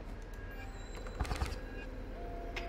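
A playing card slides and slaps onto a wooden table.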